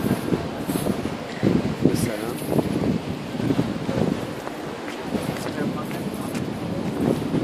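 A young man talks close to the microphone, outdoors with wind.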